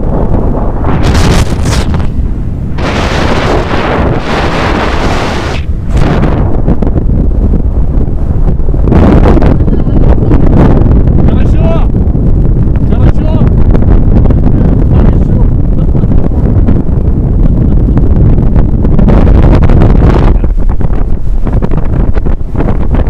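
Wind roars loudly past as a boat speeds over the sea.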